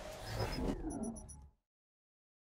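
Gunfire and game effects crackle briefly.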